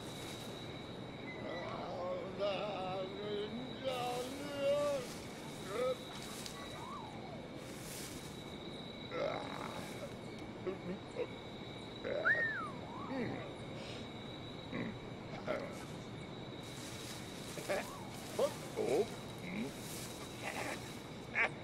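Tall grass rustles as someone moves through it.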